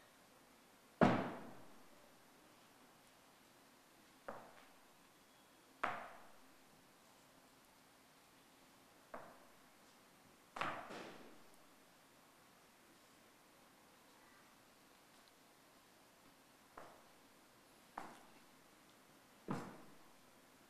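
Soldiers' boots stamp sharply on a stage, ringing out in an echoing hall.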